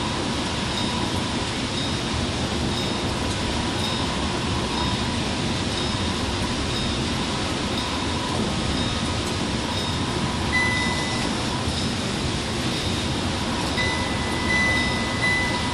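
Windscreen wipers sweep back and forth with a regular thump.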